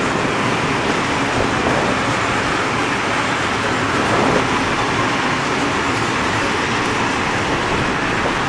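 A freight train rumbles past close by, its wheels clattering steadily on the rails.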